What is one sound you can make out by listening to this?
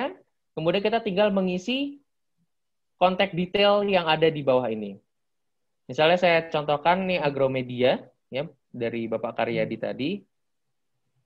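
A young man talks calmly and closely into a microphone.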